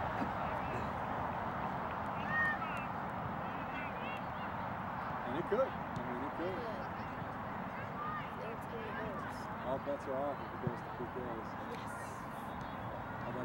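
Young players shout to each other across an open field, heard from a distance.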